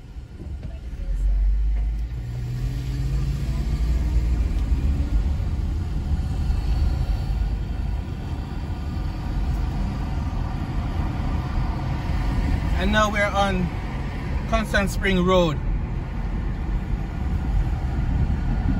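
Tyres rumble steadily on the road as the car drives.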